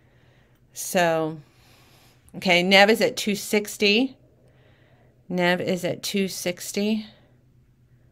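A woman talks close to a microphone, with animation.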